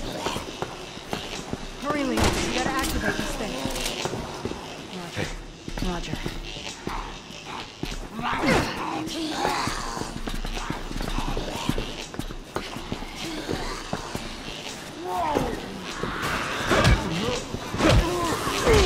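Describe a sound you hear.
Footsteps clank on a metal grate floor.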